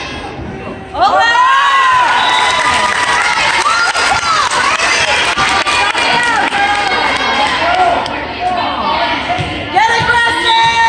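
A crowd of spectators cheers and shouts loudly in a large echoing gym.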